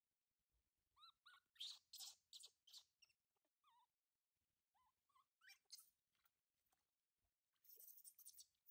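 A baby monkey squeaks and cries in high chirps.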